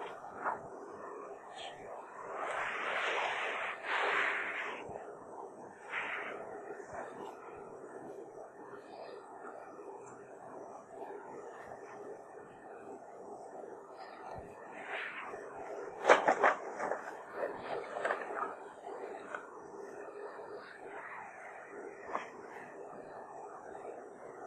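A man speaks calmly and slowly, close to a microphone.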